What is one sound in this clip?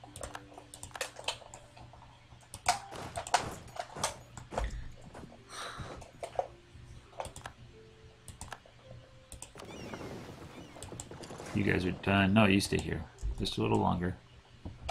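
Short interface clicks sound as game menus open and close.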